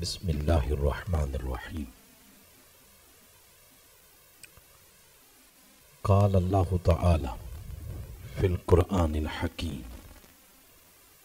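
A man speaks into a microphone with measured emphasis, pausing between phrases.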